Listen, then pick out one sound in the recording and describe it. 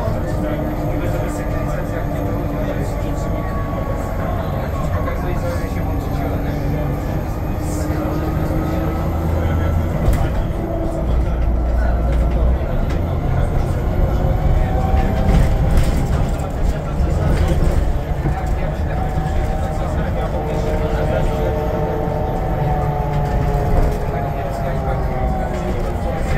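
A bus engine hums and whines steadily from inside the bus as it drives.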